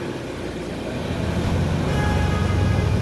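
A bus engine grows louder as the bus pulls forward.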